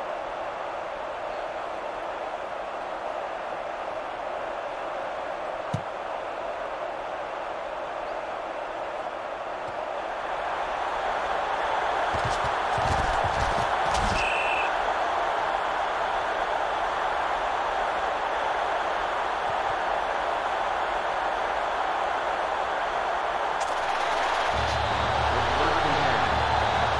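A large stadium crowd roars steadily, growing louder partway through.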